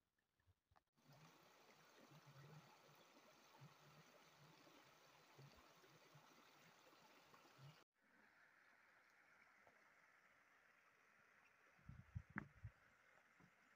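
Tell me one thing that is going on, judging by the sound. A shallow stream rushes and splashes over rocks.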